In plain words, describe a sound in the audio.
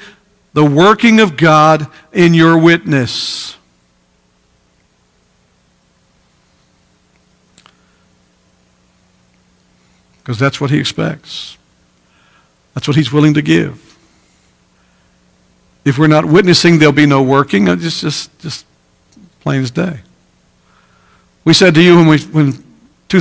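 A man speaks through a microphone with animation, pausing often.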